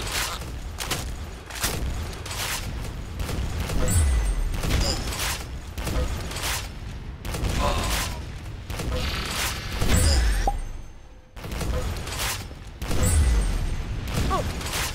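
Rifle shots fire in quick, repeated bursts.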